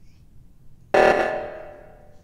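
An alarm starts blaring and fades.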